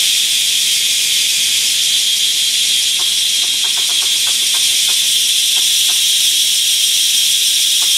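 Twigs snap and leaves rustle underfoot as a person walks through undergrowth.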